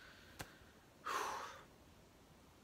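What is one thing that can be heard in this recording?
A young man exhales a breathy puff.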